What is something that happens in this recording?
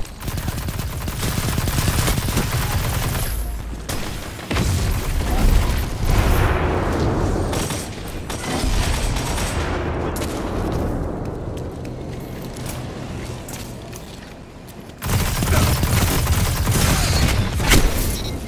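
Electric energy blasts zap and crackle.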